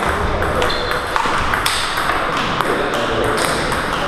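A ping-pong ball clicks on a table as a man serves.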